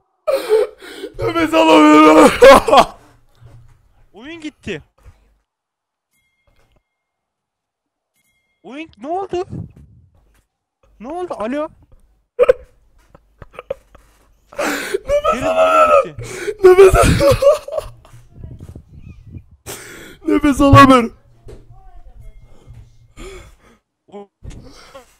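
A young man talks and exclaims with animation into a microphone.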